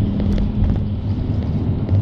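A bus passes close by.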